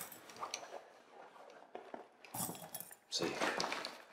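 Metal jewellery clinks onto a table.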